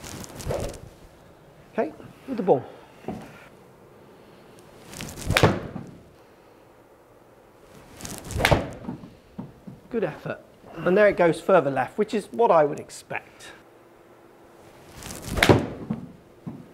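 A golf club whooshes through the air and strikes a ball with a sharp thwack.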